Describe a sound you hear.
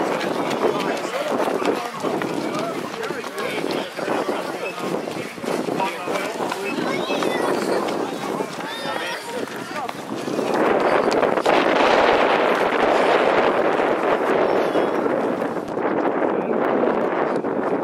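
A crowd of children and adults chatter and cheer outdoors.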